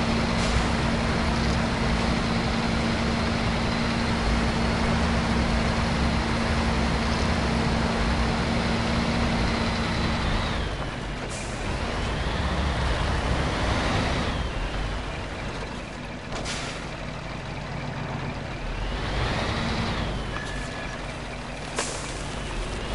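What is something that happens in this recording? A heavy truck engine rumbles and revs.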